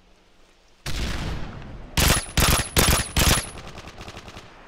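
A rifle fires several short, loud bursts that echo outdoors.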